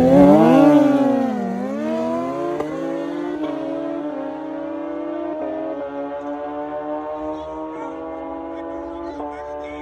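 Motorcycle engines roar loudly as the bikes launch and speed away, fading into the distance.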